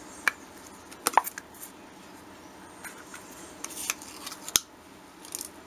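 A plastic bottle cap clicks open.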